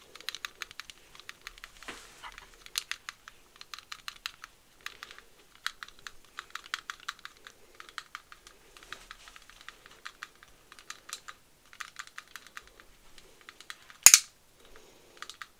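A bristly brush crackles and taps close to a microphone.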